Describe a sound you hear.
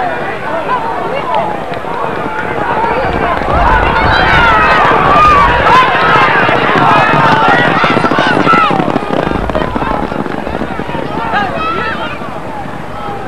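A crowd of spectators shouts and cheers excitedly.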